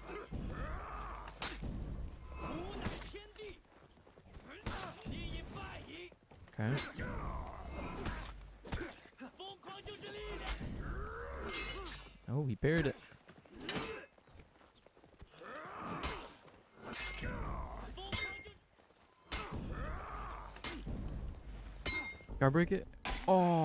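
Steel weapons clash in a fight.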